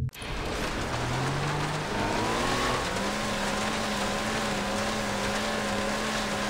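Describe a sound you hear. A jet ski engine drones steadily and rises in pitch.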